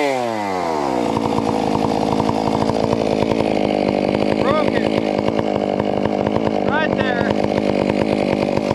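A chainsaw runs at a steady high speed, cutting through wood.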